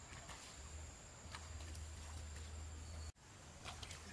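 Water trickles as a hand dips into a stream.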